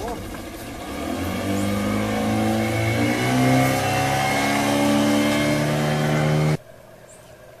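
An outboard motor starts up and revs steadily louder.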